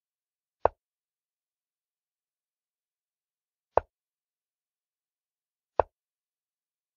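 A chess game app plays short wooden click sounds as pieces are moved.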